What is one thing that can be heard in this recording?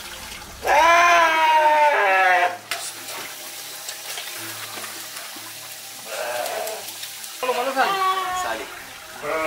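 A sheep bleats loudly and in distress, several times.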